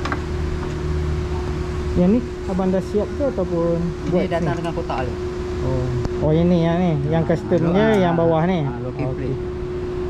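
A metal plate clicks and knocks as it is fitted onto a rack.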